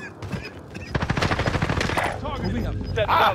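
Rapid gunshots fire in short bursts close by.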